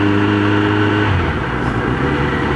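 A motorcycle engine drops in pitch as the gear shifts.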